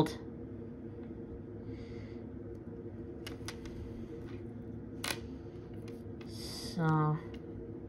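A small metal clasp clicks between fingers.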